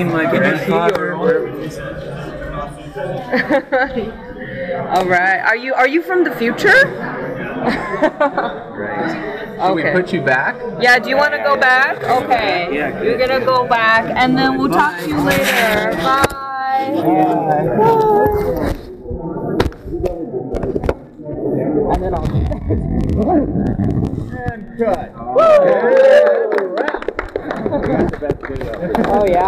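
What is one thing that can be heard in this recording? Several men and women talk and laugh together close by.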